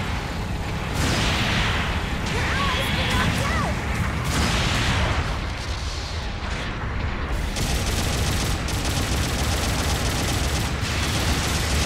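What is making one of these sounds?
Heavy mechanical thrusters roar steadily.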